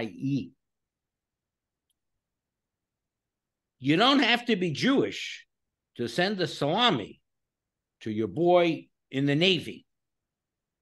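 A man speaks calmly into a microphone, heard as if over an online call.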